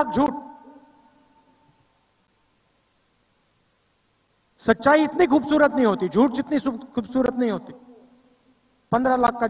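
A man speaks forcefully through a microphone and loudspeakers, with long pauses.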